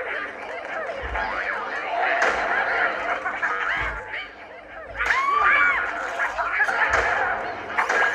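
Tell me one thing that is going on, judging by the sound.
Game bombs explode with dull thuds.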